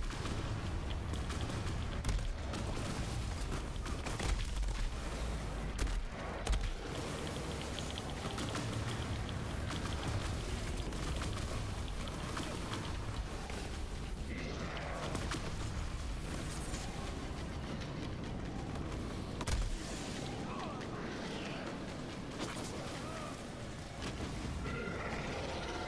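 Guns fire rapidly in bursts.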